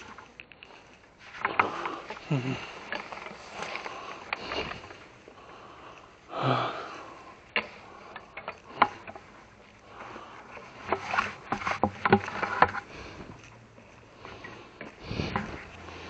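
A plastic bucket thumps and rattles as it is handled.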